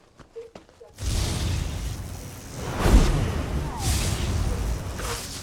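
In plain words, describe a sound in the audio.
Electric lightning crackles and buzzes loudly.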